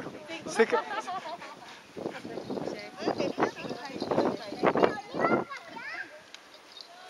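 Children and women chatter and call out close by outdoors.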